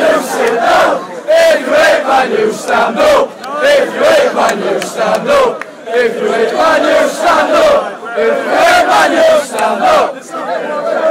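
Men in a crowd clap their hands in rhythm.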